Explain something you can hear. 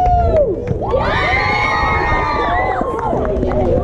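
A group of girls yells loudly together in celebration.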